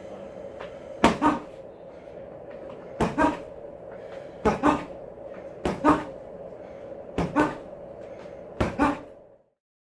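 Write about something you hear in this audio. Boxing gloves thump against a padded wall target in quick pairs.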